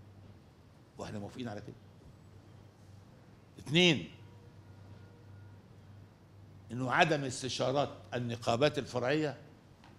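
An elderly man speaks slowly and formally into a microphone, reading out.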